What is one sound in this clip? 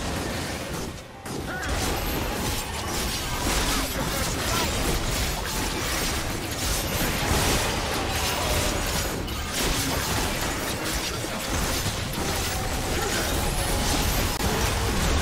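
Game battle sound effects crackle, clash and boom without pause.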